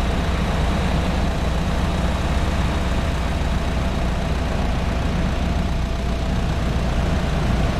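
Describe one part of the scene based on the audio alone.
A heavy truck rolls past close by.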